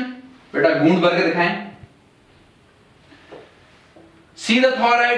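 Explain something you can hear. A man speaks calmly and clearly, close by, as if explaining.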